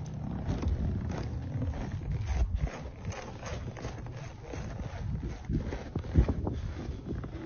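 Strong wind roars and buffets outdoors in gusts.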